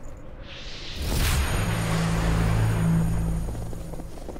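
A deep magical whoosh swells up and rumbles low.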